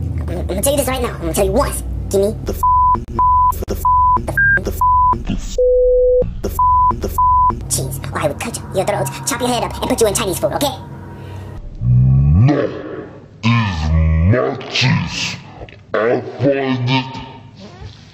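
A man speaks in a deep, gruff cartoon voice, close by.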